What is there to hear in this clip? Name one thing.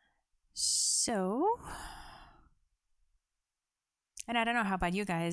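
A young woman sings into a close microphone.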